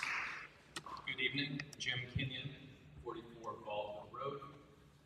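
A man speaks aloud in a large room.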